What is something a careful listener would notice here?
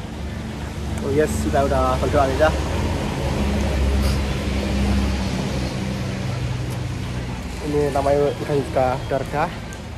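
A young man speaks close to the microphone in a calm, chatty way.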